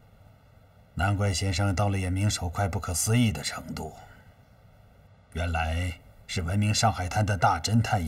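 A middle-aged man speaks with a cheerful, amused tone.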